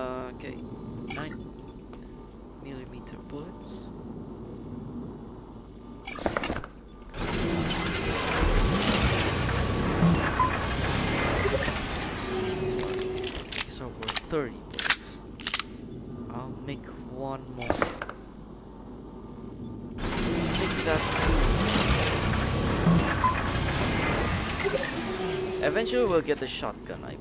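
Short electronic beeps and clicks sound as buttons are pressed.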